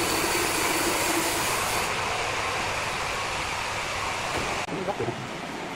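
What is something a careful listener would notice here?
A large band saw cuts through a hardwood log.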